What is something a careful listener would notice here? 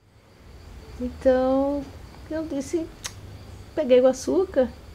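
A middle-aged woman speaks slowly and thoughtfully close by.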